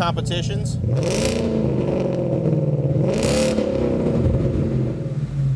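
A car engine revs sharply a few times and settles back.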